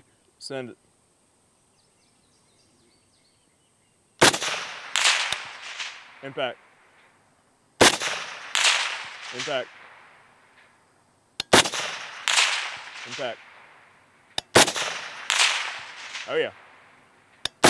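A steel target rings with a metallic ping after each hit.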